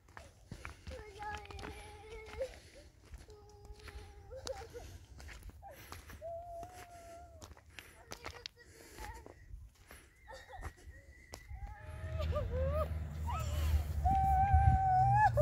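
A young child calls out nearby in a high, sing-song voice.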